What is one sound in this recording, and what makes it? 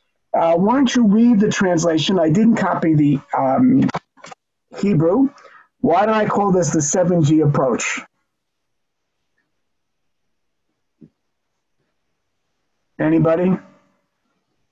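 A man speaks calmly through a computer microphone, in short bursts with pauses.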